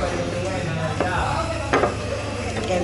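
A woman sets plates down on a table with a clink.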